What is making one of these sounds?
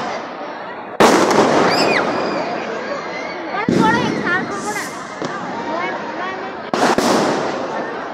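Firework sparks crackle and fizz.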